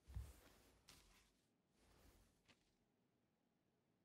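Paper rustles as an envelope is picked up.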